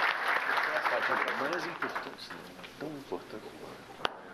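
A man speaks warmly up close.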